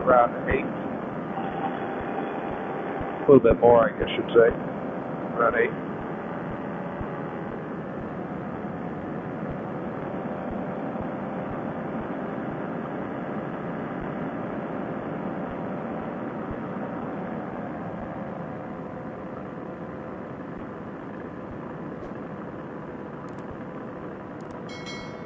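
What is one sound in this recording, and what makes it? A paramotor trike engine drones in flight.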